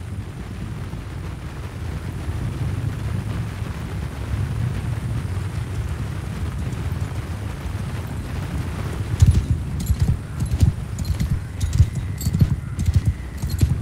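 A large crowd of soldiers runs with a low rumbling of many feet.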